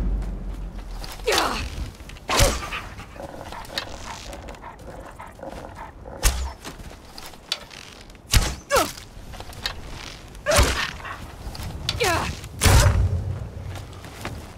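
A bowstring twangs as arrows are loosed.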